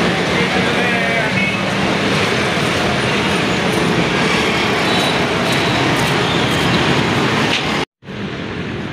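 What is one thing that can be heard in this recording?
Busy road traffic hums and rumbles below.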